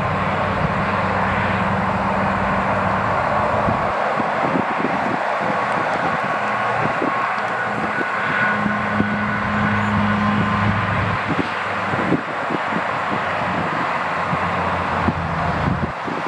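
Traffic rushes past steadily on a highway.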